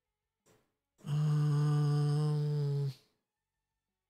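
A game menu sounds a steady, buzzing tone as a panel opens.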